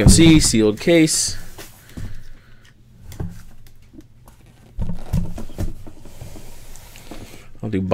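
A cardboard box scrapes and thumps as it is turned over.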